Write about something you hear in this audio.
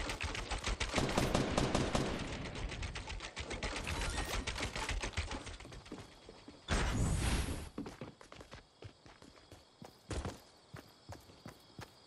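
Footsteps patter quickly over a roof.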